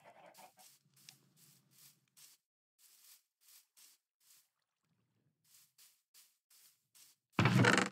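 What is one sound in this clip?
Soft footsteps pad over grass.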